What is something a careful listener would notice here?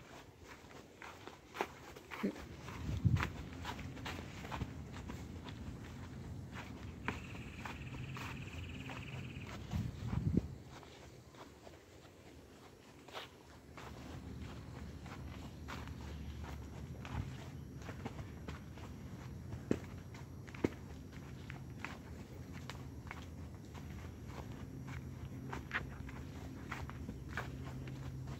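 A horse's hooves crunch and rustle through dry fallen leaves at a steady walk.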